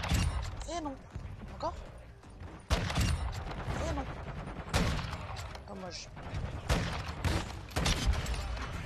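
Gunshots ring out in loud, sharp bursts.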